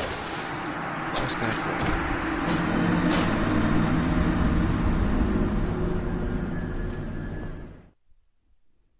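Heavy blows land and clash in a close fight.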